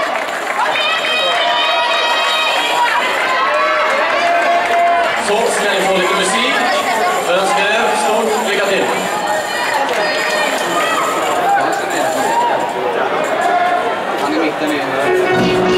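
Upbeat dance music plays loudly over loudspeakers in a large echoing hall.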